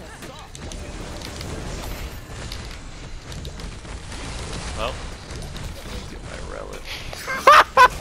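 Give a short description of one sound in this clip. Game spell effects whoosh and crackle.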